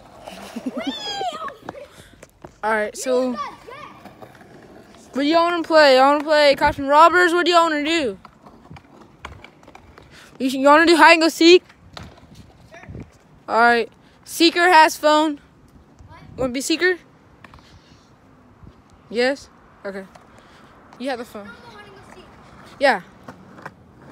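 A young boy talks and shouts excitedly close by.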